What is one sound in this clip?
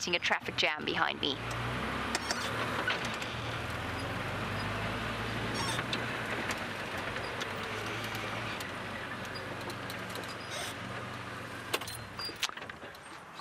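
A vehicle engine rumbles as it drives along.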